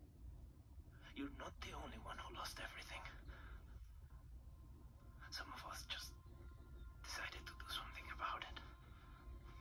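A man speaks quietly and tensely through a loudspeaker.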